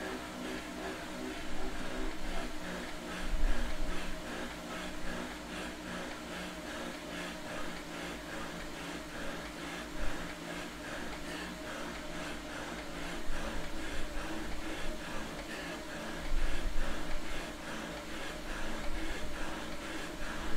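A young man pants and breathes heavily close by.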